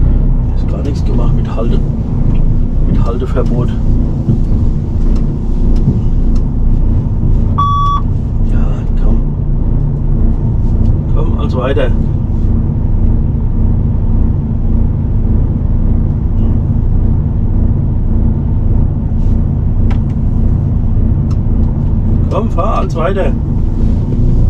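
A man speaks briefly now and then, close by.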